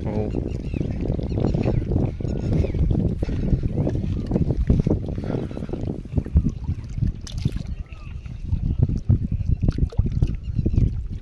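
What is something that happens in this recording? Water laps at a shore.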